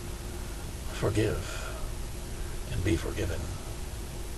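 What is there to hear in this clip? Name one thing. An older man speaks calmly and briefly, close to a microphone.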